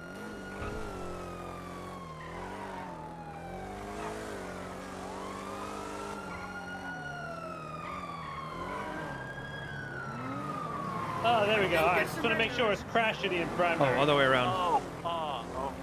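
A car engine revs and hums, rising and falling as it speeds up and slows down.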